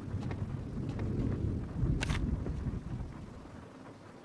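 A wooden drawer slides open.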